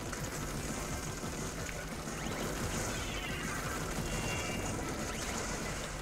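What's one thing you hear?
Ink splatters and sprays in a fast video game.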